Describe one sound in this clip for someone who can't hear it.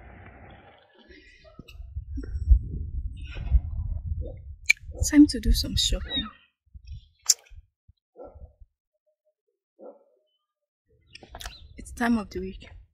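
A young woman talks calmly and close up.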